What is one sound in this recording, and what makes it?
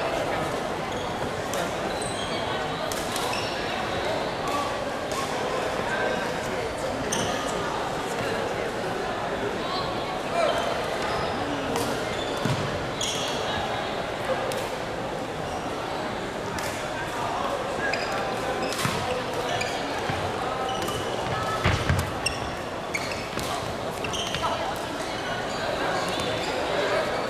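Shoes squeak on the wooden court.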